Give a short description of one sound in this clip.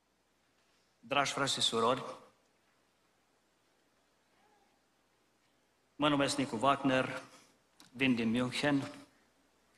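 A middle-aged man speaks calmly and deliberately through a microphone in a large hall, pausing between phrases.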